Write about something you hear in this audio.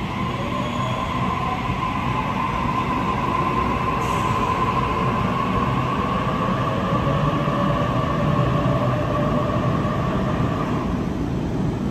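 A train's motors whine, the pitch sliding then holding before cutting out.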